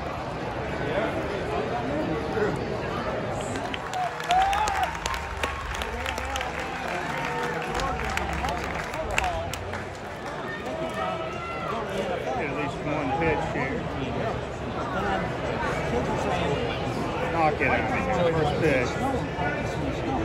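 A crowd murmurs in an open stadium.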